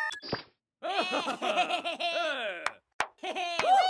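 Cartoon creatures babble and giggle in high squeaky voices.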